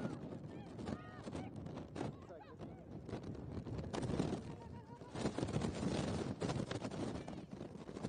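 A football is kicked on grass.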